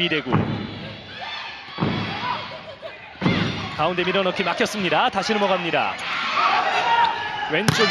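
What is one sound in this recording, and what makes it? A volleyball is hit with sharp slaps in a large echoing hall.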